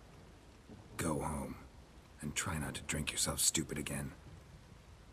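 An older man speaks gruffly.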